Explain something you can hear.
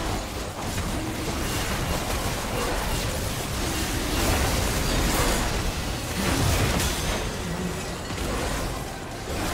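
Spell effects and magic blasts crackle and boom in a game battle.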